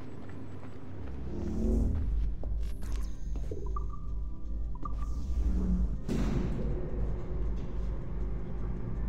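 An elevator hums and rumbles as it moves.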